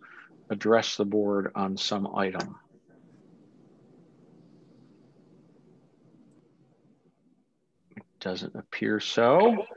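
A man speaks calmly through an online call microphone, in short bursts with a pause.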